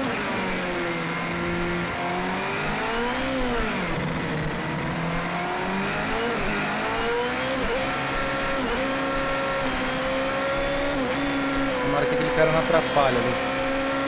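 A racing car engine revs high, rising and dropping in pitch as the gears shift.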